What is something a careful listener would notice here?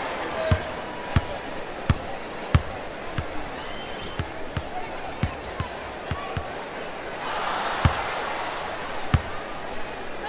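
A basketball bounces steadily on a hardwood court.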